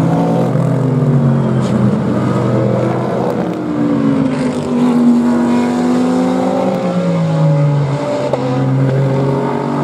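Two GT race car engines roar together through a bend, one close behind the other.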